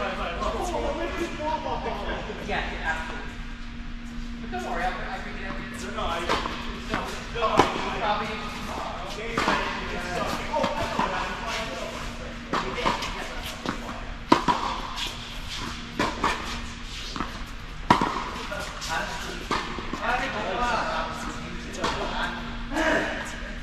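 Balls bounce on a hard court.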